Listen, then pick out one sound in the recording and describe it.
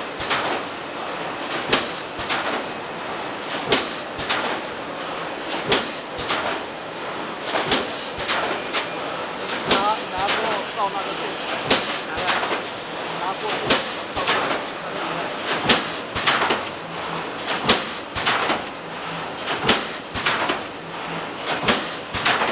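A loud hum of machinery runs throughout.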